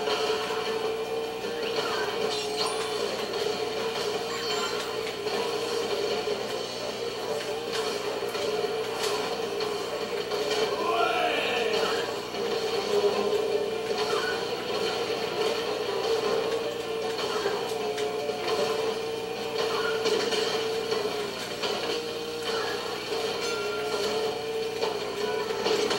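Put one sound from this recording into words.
A kart engine hums steadily through a small speaker.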